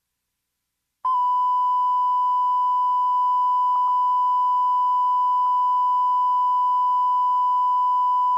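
A steady high test tone sounds without a break.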